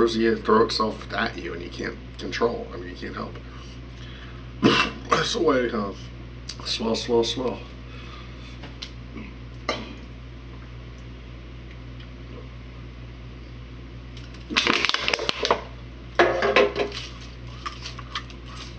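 A man talks close by, casually.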